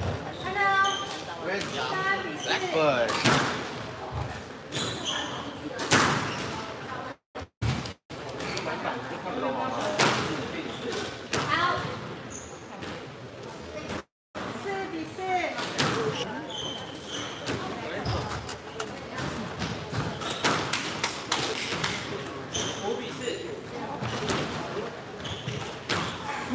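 A squash ball smacks off the walls in an echoing court, again and again.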